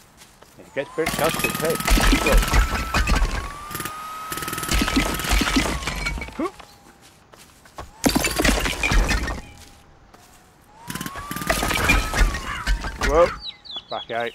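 A jackhammer rattles loudly in bursts, pounding into brick.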